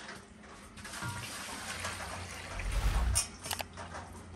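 Water pours from a pail into a basin.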